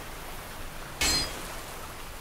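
A sword swings through the air with a swish.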